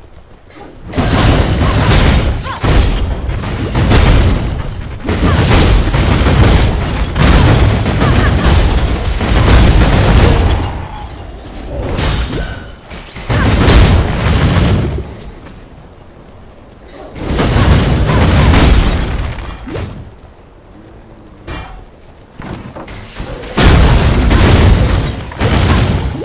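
Magic blasts boom and crackle in loud, rapid bursts.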